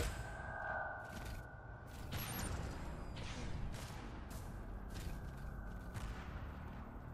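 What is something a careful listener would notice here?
A laser gun fires in bursts.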